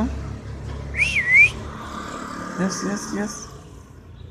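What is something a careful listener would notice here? A puppy whimpers and yelps in short high cries.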